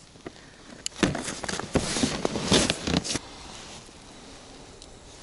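Boots crunch on snow.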